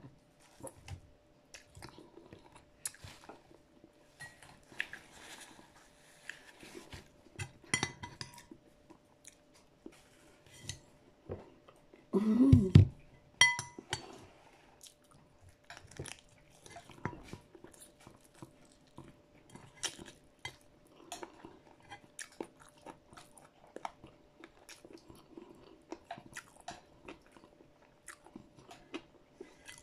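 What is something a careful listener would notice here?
A woman chews food noisily close by.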